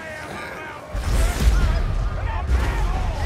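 A heavy rumble booms loudly.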